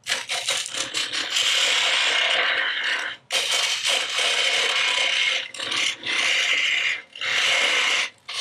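A chisel scrapes and hisses against spinning wood on a lathe, in bursts.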